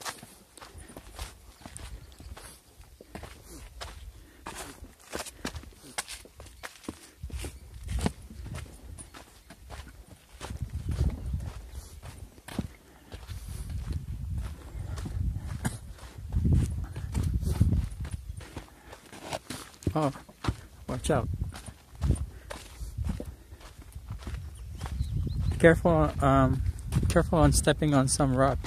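Footsteps crunch on a gravelly dirt trail.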